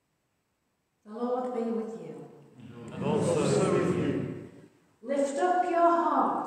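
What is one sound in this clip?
A middle-aged woman speaks clearly, close by, in a calm, steady voice.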